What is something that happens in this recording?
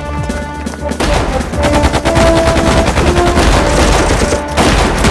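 Rifle shots crack rapidly.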